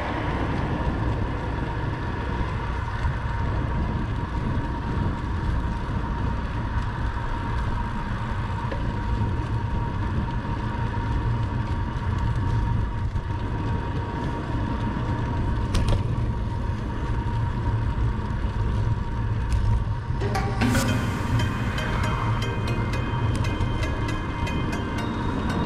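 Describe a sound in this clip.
Wind rushes and buffets steadily against a microphone outdoors.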